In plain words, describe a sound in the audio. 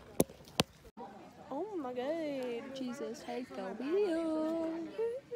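Another teenage girl answers with animation, close to the microphone.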